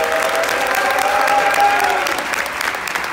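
A large choir of young women sings loudly in an echoing hall.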